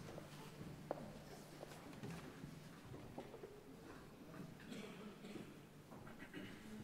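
An orchestra plays softly in a large hall.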